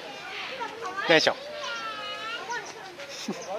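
A young child calls out in a high voice.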